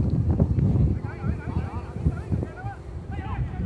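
Young men shout to each other across an open pitch in the distance.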